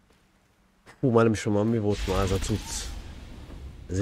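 A man speaks in a deep, resonant voice.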